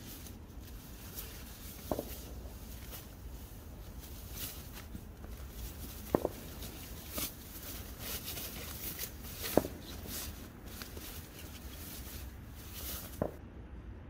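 A nylon sheet rustles under a person's hands.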